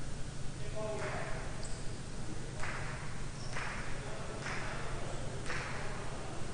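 A ball smacks against a wall and echoes through a large hall.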